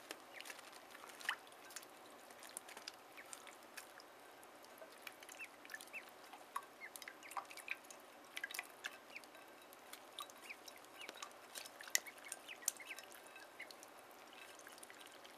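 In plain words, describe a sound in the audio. Ducklings peck and tap at a dish.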